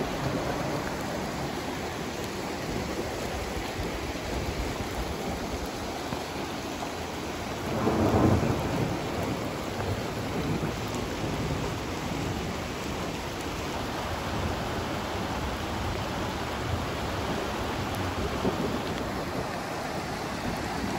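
Floodwater rushes and churns steadily along outdoors.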